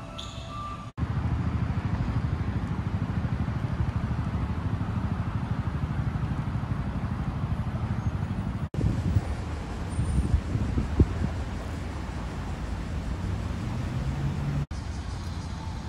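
Wind blusters against a microphone outdoors.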